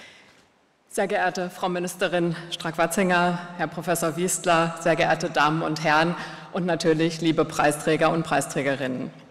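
A woman speaks calmly into a microphone, heard over a loudspeaker in a large hall.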